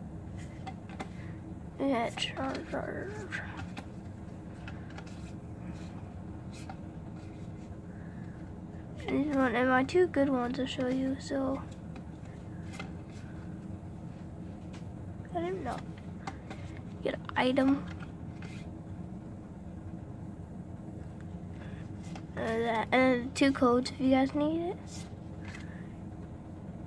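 Trading cards rustle and flick softly as they are shuffled through.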